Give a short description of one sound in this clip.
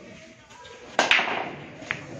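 A cue strikes a billiard ball with a sharp crack.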